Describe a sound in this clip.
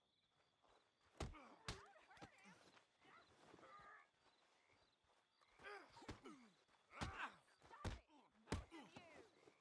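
Fists thud in heavy punches.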